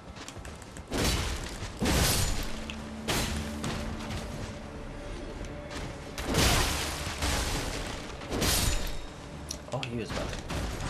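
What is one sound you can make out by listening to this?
Metal blades clash and clang in a fight.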